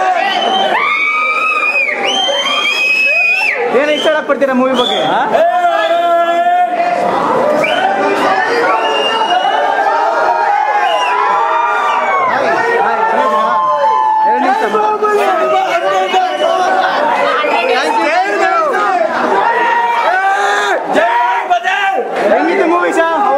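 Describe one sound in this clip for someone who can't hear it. A crowd of young men shouts and cheers close by.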